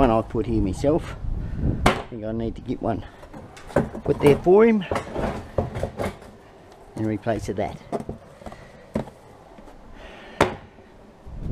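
A plastic wheelie bin bumps and rattles as it is moved.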